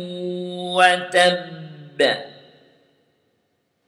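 A man speaks close to a microphone, drawing out his words in a chanting voice.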